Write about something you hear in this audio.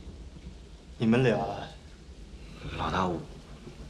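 A young man speaks with surprise, close by.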